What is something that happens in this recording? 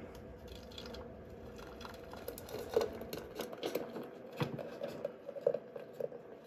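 Dry grains pour and rattle into a metal bowl.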